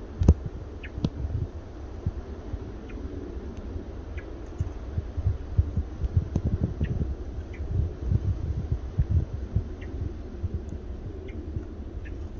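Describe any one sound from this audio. A small bird chirps briefly now and then in the trees.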